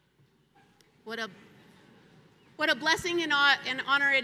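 A middle-aged woman speaks with feeling into a microphone.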